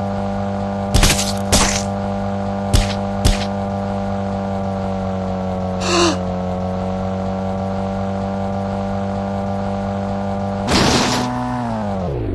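A car crashes and thuds against something.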